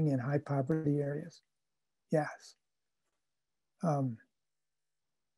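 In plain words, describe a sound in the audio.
An older man speaks calmly in short phrases over an online call.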